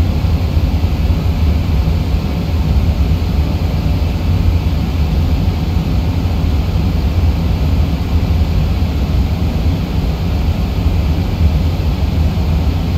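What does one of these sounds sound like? Jet engines hum with a steady, deep roar.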